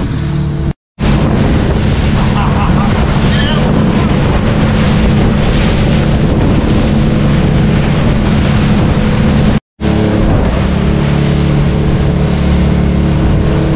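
Water churns and splashes in a boat's wake.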